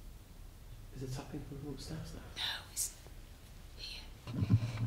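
A young woman speaks quietly and nervously, close by.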